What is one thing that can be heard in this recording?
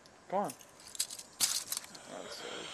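Metal handcuffs click and rattle as a key unlocks them.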